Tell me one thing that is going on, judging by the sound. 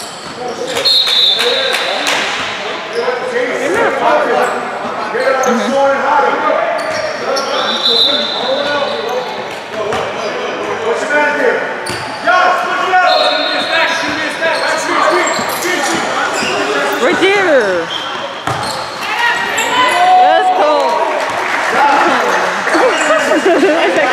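A crowd of spectators chatters in an echoing hall.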